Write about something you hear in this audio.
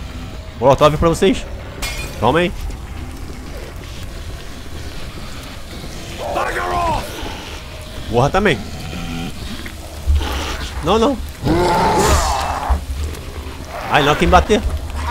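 A zombie snarls and shrieks repeatedly.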